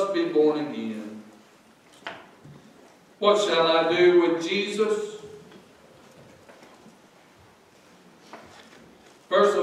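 A middle-aged man preaches with animation through a microphone in an echoing room.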